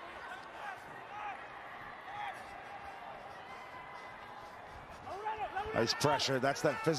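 A large crowd cheers in a stadium.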